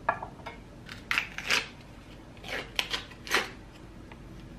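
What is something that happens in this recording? A foil lid crinkles as it is peeled off.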